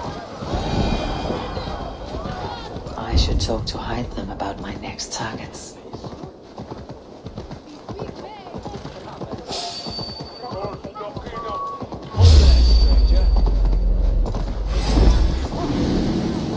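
Horse hooves clop steadily on a dirt and stone path.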